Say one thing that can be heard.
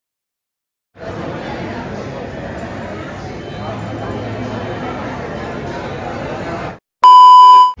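A crowd chatters in a large indoor hall.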